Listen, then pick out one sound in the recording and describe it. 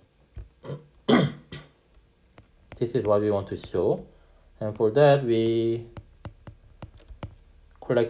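A stylus taps and scratches on a glass tablet.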